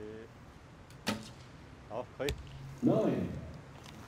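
An arrow thuds into a target.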